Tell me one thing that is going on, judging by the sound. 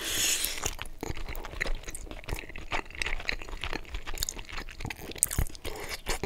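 A man chews spaghetti wetly close to a microphone.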